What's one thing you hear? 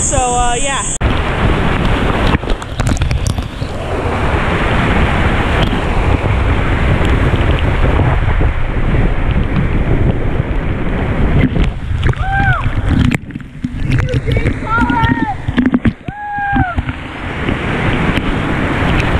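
A waterfall roars and splashes heavily nearby.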